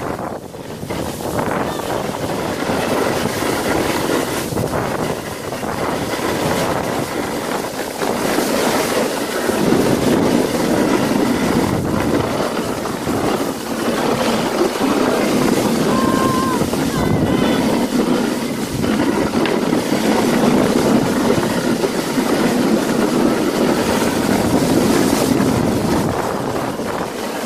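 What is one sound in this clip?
Wind rushes steadily past outdoors.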